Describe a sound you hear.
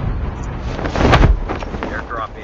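A parachute snaps open with a sudden flap.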